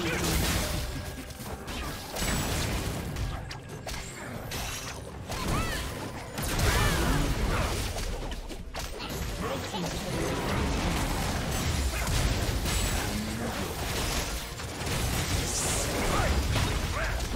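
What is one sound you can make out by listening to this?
Spell effects whoosh and crackle in a busy fight.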